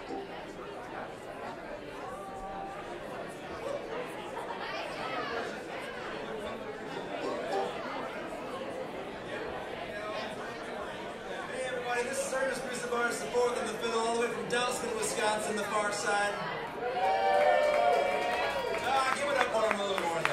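A string band plays a lively tune.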